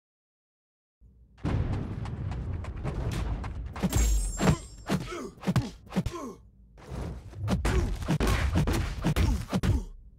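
Video game fighters punch and kick with heavy thuds and whooshes.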